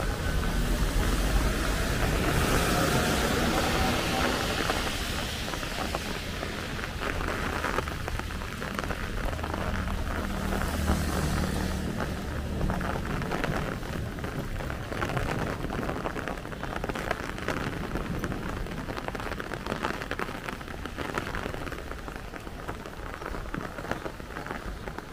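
Car tyres hiss on a wet road.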